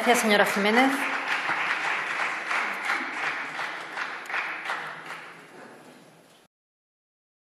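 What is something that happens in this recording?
People clap their hands, and the applause fades away.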